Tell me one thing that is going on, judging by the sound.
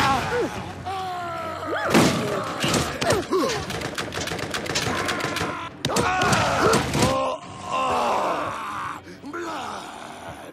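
Creatures shriek and snarl up close.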